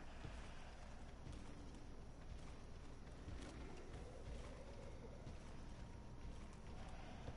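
Footsteps in armour thud on a stone floor.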